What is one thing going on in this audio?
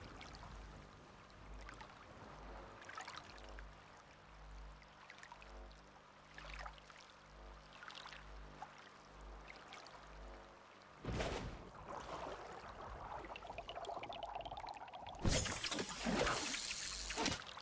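Water sloshes and splashes with each wading step.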